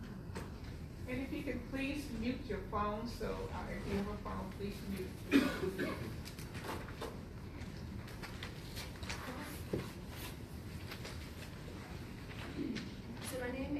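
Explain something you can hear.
A young woman speaks into a microphone, heard through loudspeakers in a large room.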